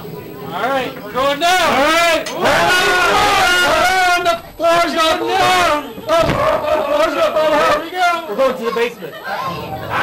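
A man talks loudly up close.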